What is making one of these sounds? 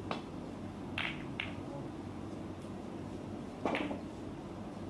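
Snooker balls click against each other.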